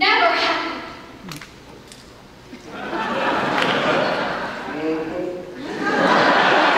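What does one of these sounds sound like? A chorus of women sings loudly together in a large echoing hall.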